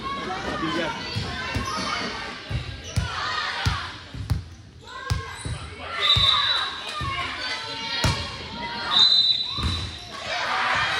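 A volleyball thumps off players' arms and the floor in a large echoing gym.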